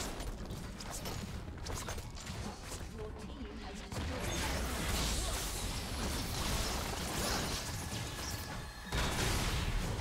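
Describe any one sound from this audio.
Game spell effects whoosh and crash in a loud fight.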